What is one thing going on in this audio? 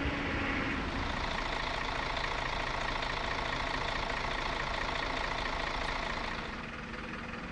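A bus engine idles with a steady hum.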